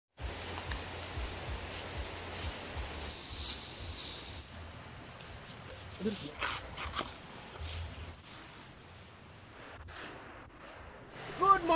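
A machete chops through plants and stalks.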